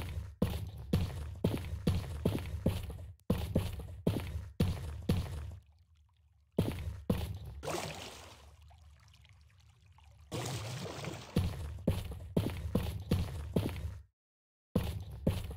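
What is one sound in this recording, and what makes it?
Footsteps crunch steadily on rocky ground.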